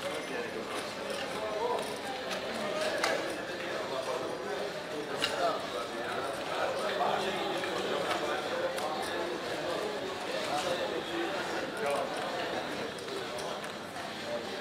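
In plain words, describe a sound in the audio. Plastic chips clack and click as they are placed on a table.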